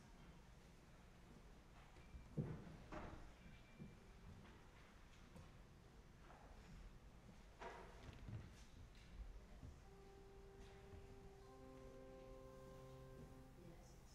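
People in a congregation shift and rustle in a large echoing hall.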